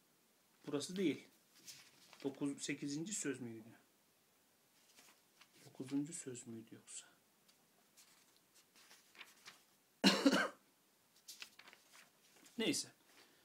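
A man speaks quietly and haltingly, close to a microphone.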